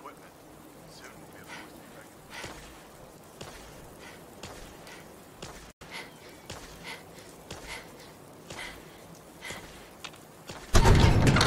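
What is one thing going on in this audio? Boots thud quickly on hard ground at a run.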